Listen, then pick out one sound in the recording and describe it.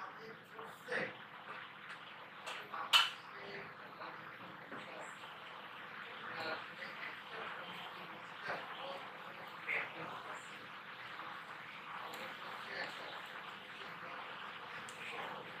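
Thick batter pours softly into a pan.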